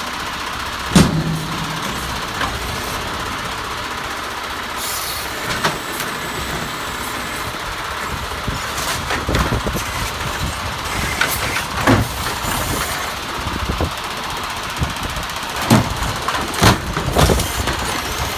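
Plastic carts bang and thud against metal.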